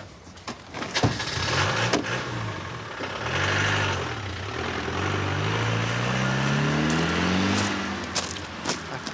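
A car engine starts, revs and the vehicle drives away.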